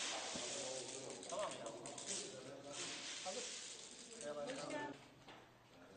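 A hand stirs through a pile of hazelnuts, making them rattle and clatter.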